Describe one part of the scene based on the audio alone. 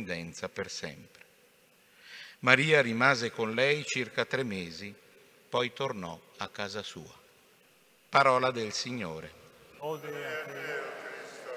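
A man chants through a microphone in a large echoing hall.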